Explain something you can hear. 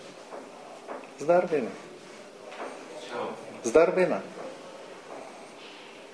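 A middle-aged man speaks calmly in a room with a slight echo.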